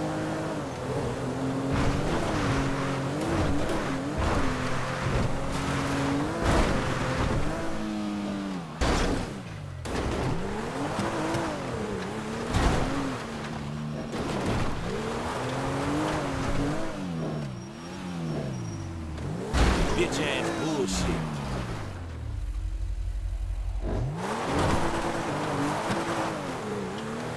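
A hovering vehicle's engine hums, its pitch rising and falling as it speeds up and slows down.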